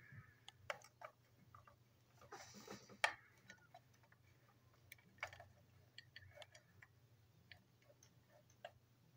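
Small plastic parts of a toy train click and rattle as fingers handle them.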